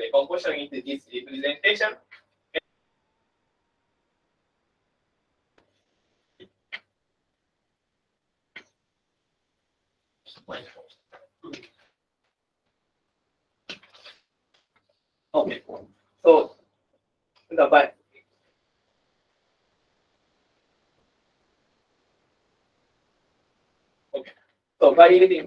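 A man lectures through a microphone, speaking calmly in short bursts with pauses.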